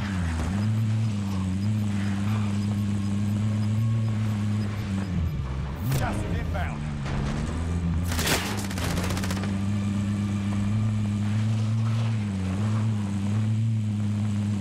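A truck engine roars steadily as it drives off-road.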